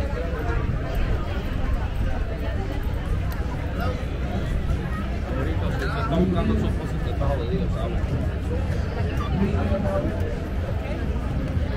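A crowd of men and women chatters all around outdoors.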